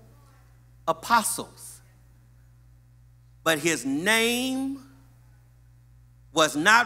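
A man preaches with animation into a microphone, his voice rising in bursts with pauses between.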